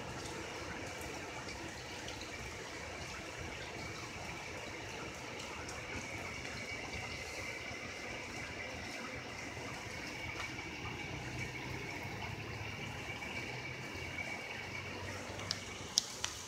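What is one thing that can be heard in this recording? Steady rain falls and patters outdoors.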